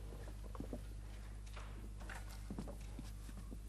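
High heels click on a hard floor as a woman walks away.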